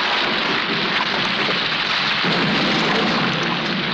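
Rain pours down outdoors.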